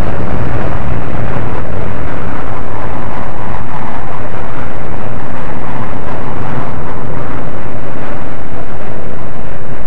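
A jet plane's roar fades into the distance as it climbs away.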